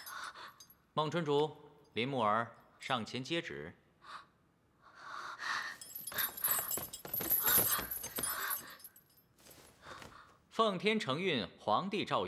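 A young man announces loudly and formally.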